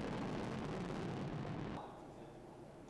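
A rocket engine roars steadily.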